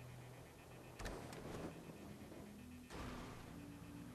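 A car lands hard with a loud thud.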